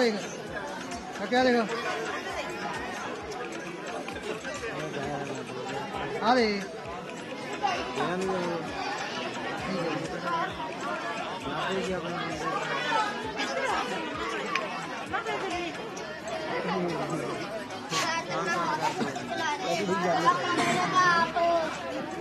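A crowd of men and women talk and call out loudly nearby.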